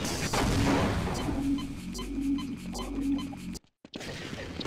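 A wall-mounted health charger hums in short electronic pulses.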